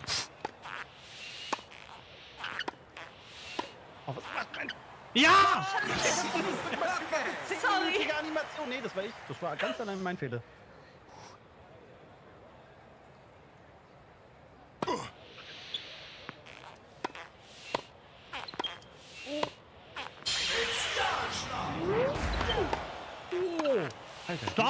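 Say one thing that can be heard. Tennis balls are struck with sharp pops.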